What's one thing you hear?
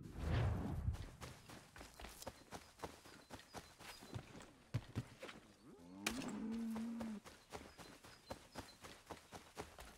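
Footsteps run quickly through grass and dirt.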